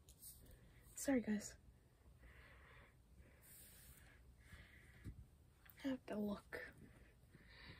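A young girl speaks softly, close by.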